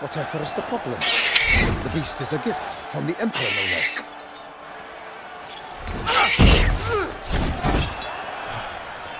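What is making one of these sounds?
Heavy metal bells clang and jangle.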